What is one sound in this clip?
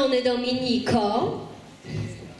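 A woman sings into a microphone over loudspeakers.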